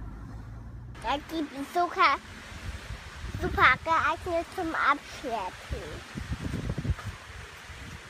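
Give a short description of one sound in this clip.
A young boy speaks close by with animation.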